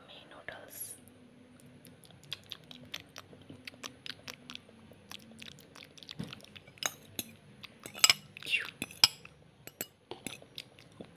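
A fork clicks and scrapes against a bowl of noodles.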